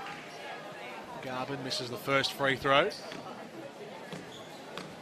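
A crowd murmurs softly in a large echoing hall.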